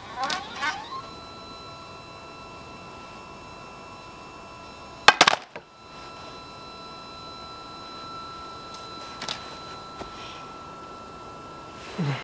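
A telescope mount's motor whines steadily as it turns.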